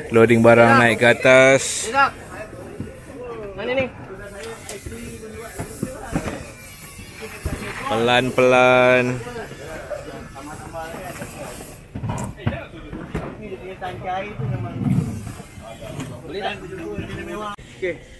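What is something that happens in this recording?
Plastic coolers and bags thump onto a boat's floor.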